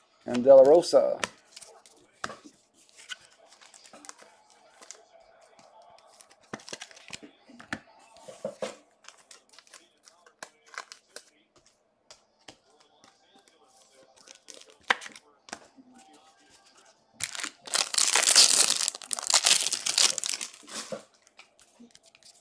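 Trading cards shuffle and rustle in a hand.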